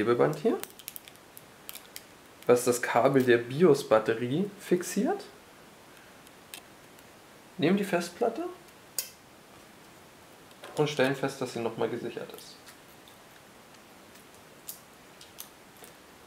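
A small screwdriver clicks as it turns screws.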